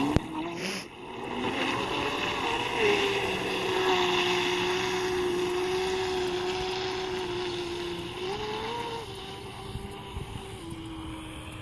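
A small boat motor whines steadily across open water, its pitch rising and dipping now and then.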